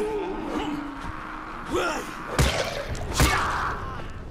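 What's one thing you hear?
A metal wrench strikes a body with heavy thuds.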